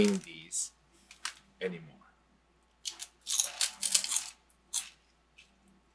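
Crunchy puffed snacks crunch loudly while being chewed.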